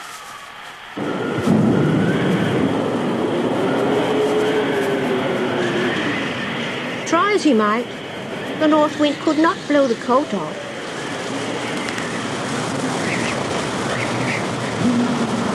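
A giant blows a strong gust of wind.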